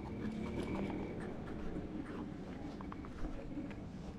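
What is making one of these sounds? Fingers handle a small wooden box.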